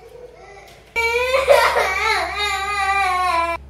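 A young boy speaks loudly, close by.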